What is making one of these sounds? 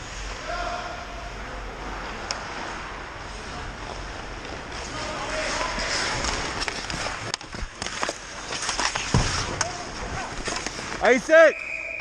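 Skates scrape and swish across ice.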